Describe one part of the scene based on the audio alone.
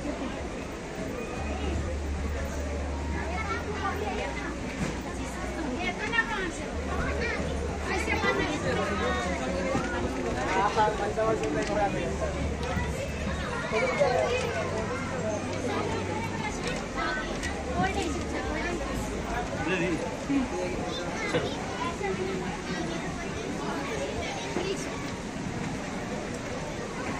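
Children and adults chatter nearby in a busy echoing room.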